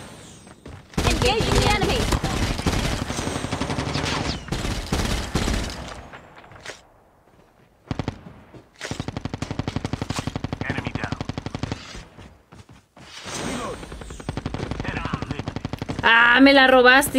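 Rapid gunfire bursts in quick repeated shots.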